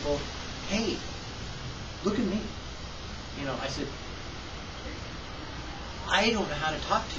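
An older man talks calmly and close by, in short phrases with pauses.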